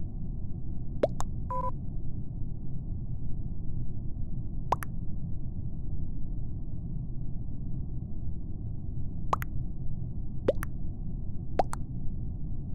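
Short electronic chirps pop up now and then as chat messages arrive.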